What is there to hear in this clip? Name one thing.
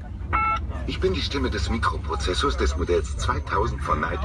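A male voice speaks calmly through a car loudspeaker.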